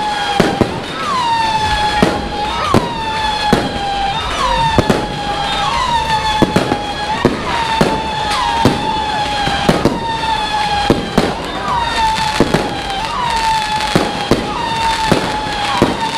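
Fireworks burst with sharp bangs and crackles.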